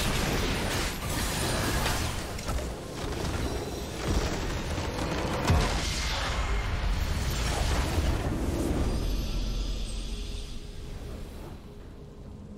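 A loud rumbling explosion bursts and booms, then slowly dies away.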